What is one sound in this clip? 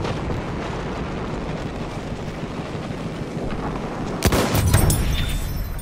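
Aeroplane engines drone overhead.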